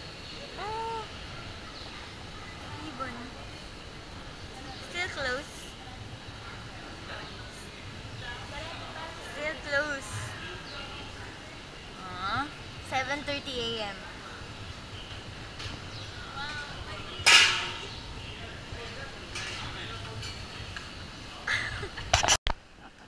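Young people talk and chatter nearby.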